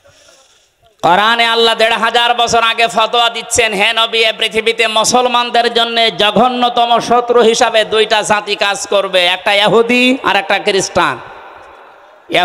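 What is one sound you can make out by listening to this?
A man chants in long, melodic phrases through a loudspeaker.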